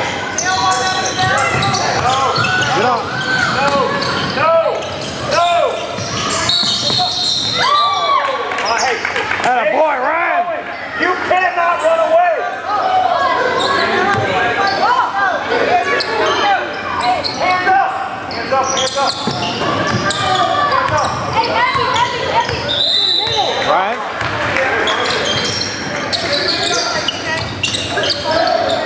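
Young players shout and call out across the hall.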